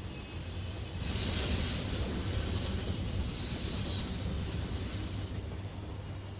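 A train's engine rumbles.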